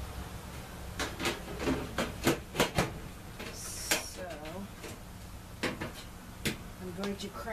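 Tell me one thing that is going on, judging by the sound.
Metal parts clank and click as a person handles them.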